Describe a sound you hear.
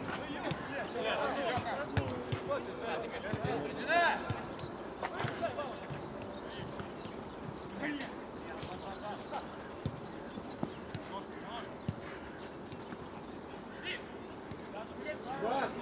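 Young men shout to each other across an open pitch.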